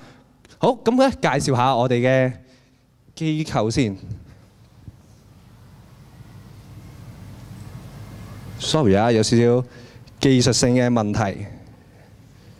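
A young man speaks into a microphone through loudspeakers in a large echoing hall, in bursts with pauses.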